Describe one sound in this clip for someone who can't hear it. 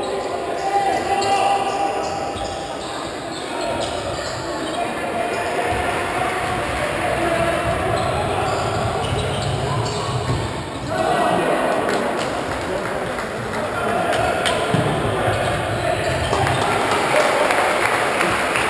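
A crowd of spectators murmurs and cheers in a large echoing hall.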